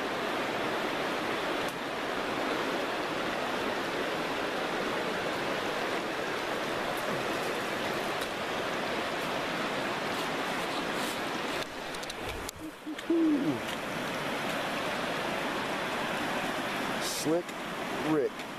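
A shallow creek trickles and babbles over rocks.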